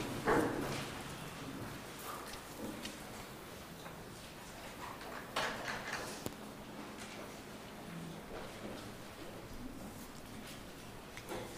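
A man speaks calmly into a microphone in an echoing room.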